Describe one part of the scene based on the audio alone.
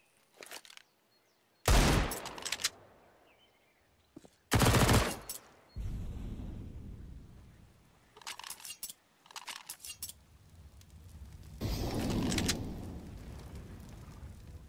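A weapon clicks and rattles as it is drawn.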